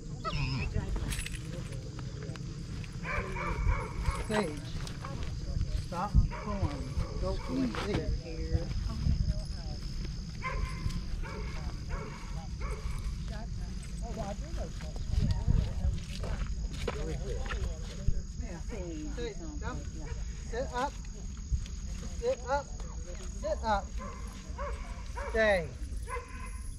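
A man talks nearby outdoors.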